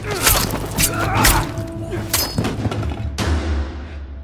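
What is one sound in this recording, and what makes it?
Heavy blows thud in a close struggle.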